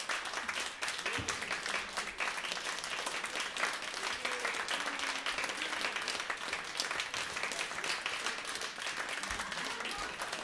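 An audience claps steadily in a room.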